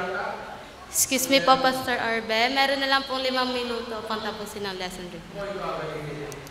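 A young woman speaks through a microphone.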